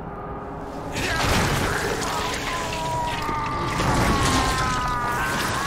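A huge creature shrieks loudly.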